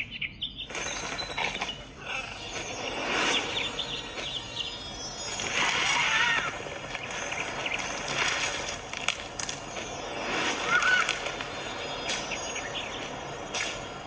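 Upbeat game music plays from a small tablet speaker.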